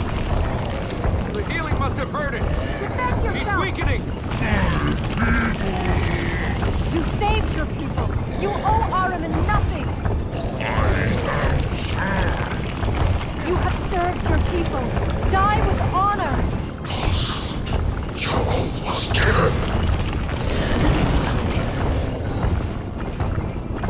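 Fire roars steadily.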